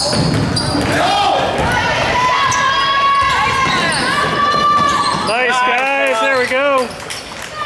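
Basketball shoes squeak on a hardwood court in an echoing gym.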